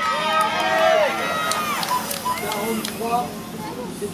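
Spectators clap.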